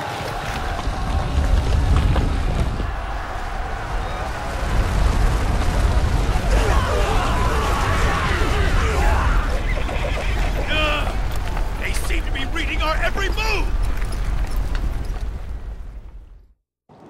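Many footsteps rumble as troops charge.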